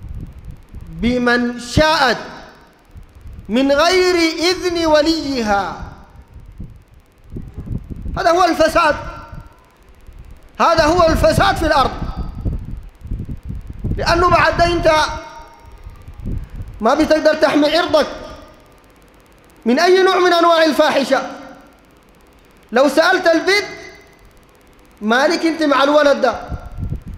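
A man preaches forcefully into a microphone in bursts, his voice echoing through a large hall.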